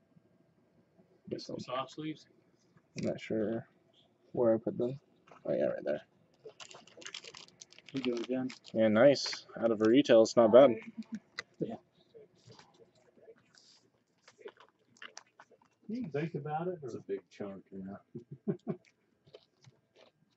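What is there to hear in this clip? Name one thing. Trading cards slide and rustle between fingers.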